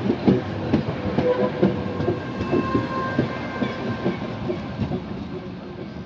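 Tram wheels squeal faintly on the rails.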